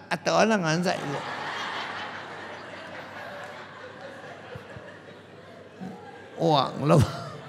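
A large audience laughs and murmurs.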